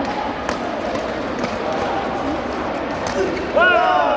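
Shuttlecocks are struck with sharp pops in a large echoing hall.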